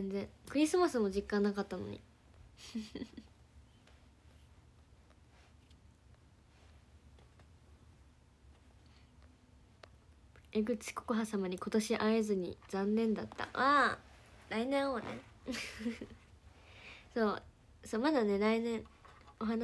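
A young woman talks brightly, close to the microphone.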